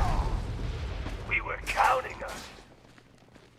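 A heavy blow lands with a deep, booming thud.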